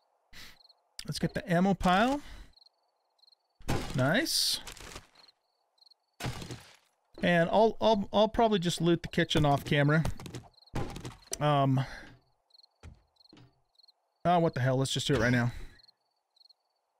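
An older man talks close into a microphone.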